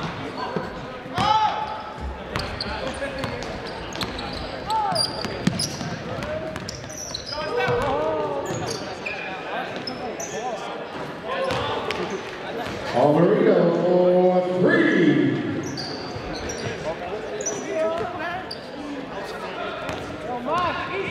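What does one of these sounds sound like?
Spectators talk and call out in an echoing gym.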